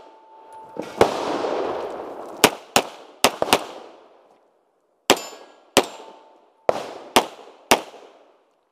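A pistol fires rapid shots outdoors, each crack echoing.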